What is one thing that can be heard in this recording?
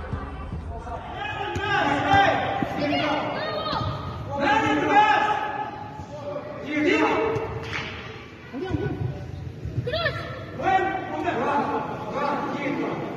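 Spectators nearby shout and cheer.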